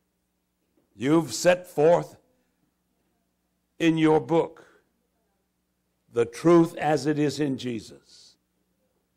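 A man speaks slowly into a microphone in a large room, with pauses between phrases.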